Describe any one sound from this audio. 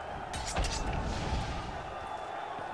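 A fiery blast bursts with a roar.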